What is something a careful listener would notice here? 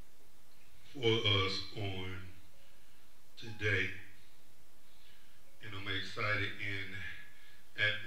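A man speaks slowly and calmly through a microphone, pausing between phrases.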